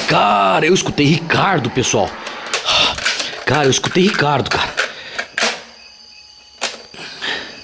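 Buttons on a tape recorder click down with sharp snaps.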